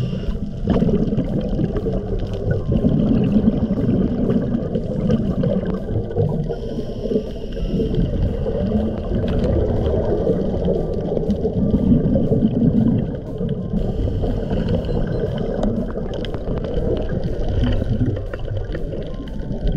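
A diver's exhaled bubbles rumble and gurgle underwater.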